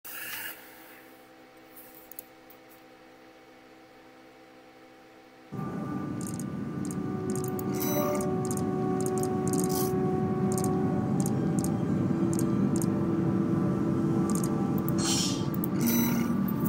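Game music drones low and steady, growing fuller partway through.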